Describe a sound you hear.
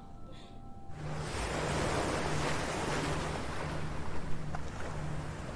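Waves wash onto a pebble shore.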